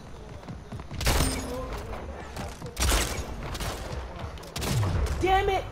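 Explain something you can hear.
Gunshots crack sharply in quick bursts.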